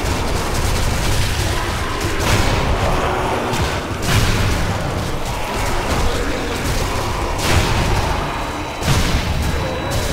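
Gunshots fire in bursts, loud and close.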